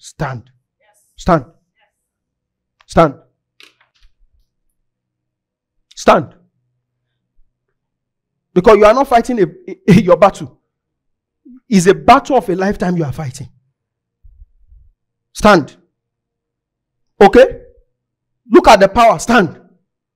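A young man speaks through a microphone in short bursts, with long pauses.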